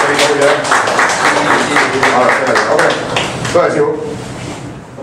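A small group of people applauds close by.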